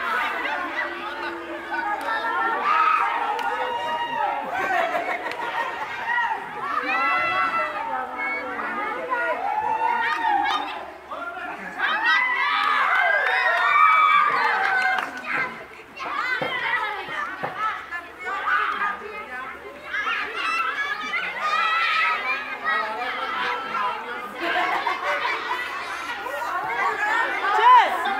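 Children laugh and shriek with excitement.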